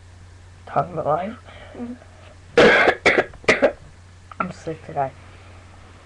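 A boy talks calmly, close to a small built-in microphone.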